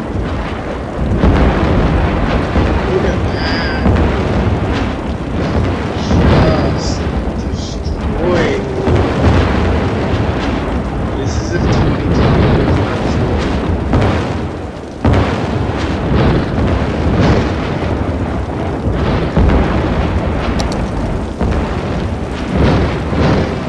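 A man talks into a headset microphone.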